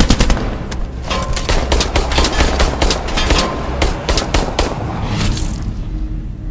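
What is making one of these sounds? A pistol fires a string of quick shots.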